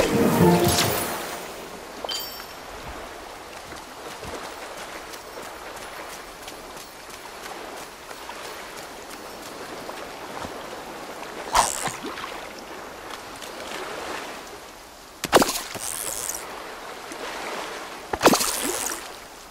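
Gentle waves wash steadily onto a shore.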